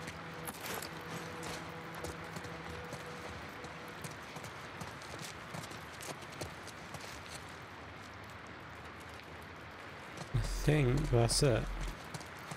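Footsteps tap on a hard tiled floor.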